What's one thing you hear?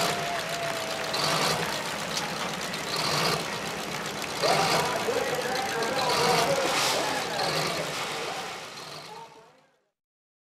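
A tractor engine rumbles and idles nearby.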